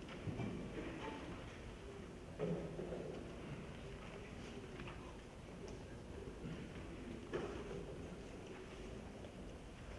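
A large choir of men and women sings.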